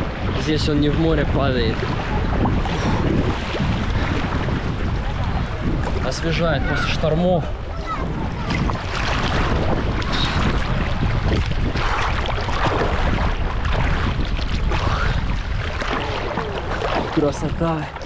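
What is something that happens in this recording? A young man talks close by, with animation.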